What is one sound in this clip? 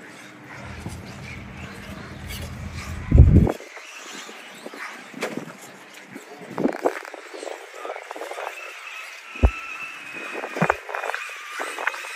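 Plastic tyres scrape and knock on rock.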